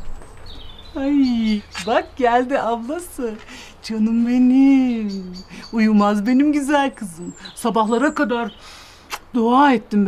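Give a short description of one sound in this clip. A middle-aged woman speaks warmly and with animation close by.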